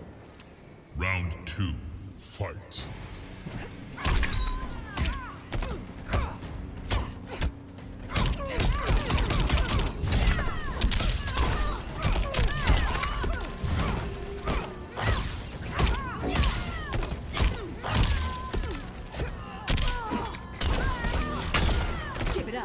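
Heavy punches and kicks land with loud thuds and cracks in a fast fight.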